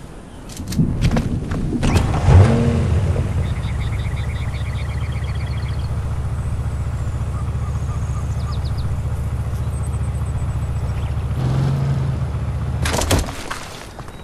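An SUV engine idles with a low, steady hum.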